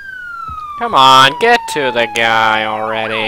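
A police siren wails.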